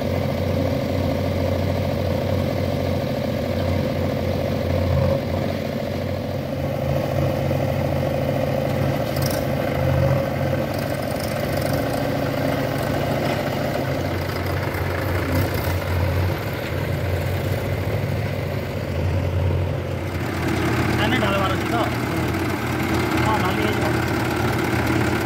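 A tractor diesel engine chugs steadily close by.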